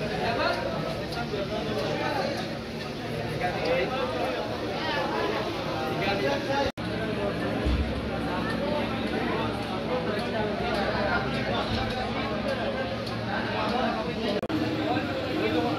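Plates and cutlery clink as people eat.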